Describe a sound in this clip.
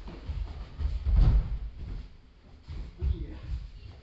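A body thuds onto a padded mat.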